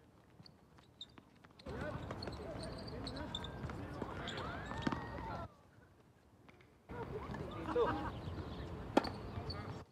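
A tennis racket strikes a ball with sharp pops.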